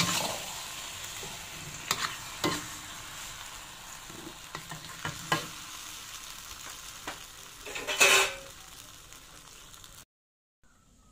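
Food sizzles and hisses in a hot wok.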